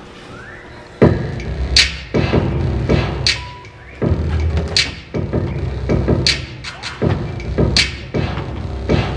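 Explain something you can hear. A boy raps loudly into a microphone, heard through loudspeakers in a large echoing hall.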